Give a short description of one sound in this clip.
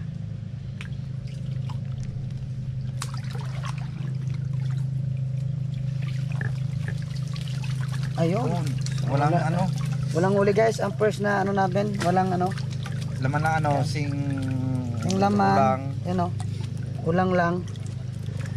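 Water splashes as a man wades in shallow water.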